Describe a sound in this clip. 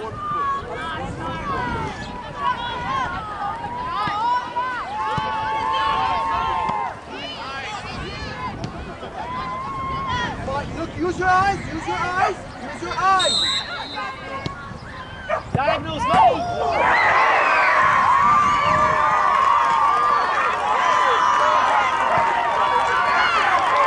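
Young women shout to one another across an open field outdoors.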